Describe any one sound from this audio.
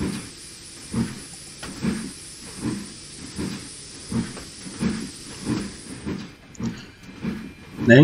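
A steam locomotive chuffs in a steady rhythm.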